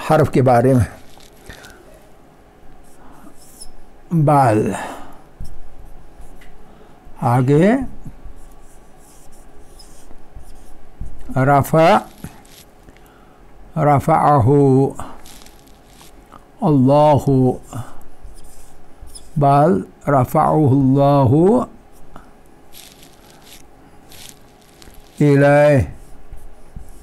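A man speaks calmly in short phrases nearby, with pauses between them.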